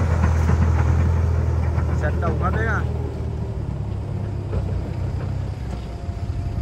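Truck tyres squelch and crunch over a muddy dirt track.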